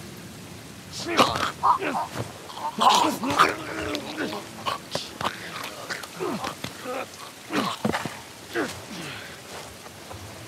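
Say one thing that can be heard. A man grunts and strains in a struggle.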